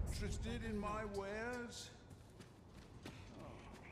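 Footsteps run across a floor.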